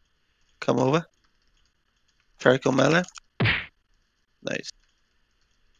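A man speaks into a microphone in short bursts.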